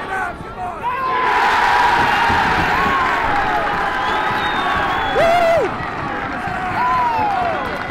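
A crowd cheers and roars loudly.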